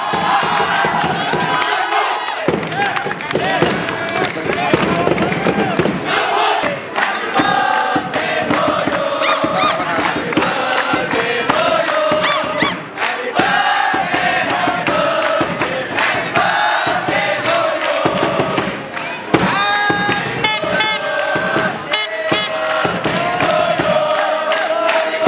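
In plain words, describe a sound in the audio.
Fans clap their hands.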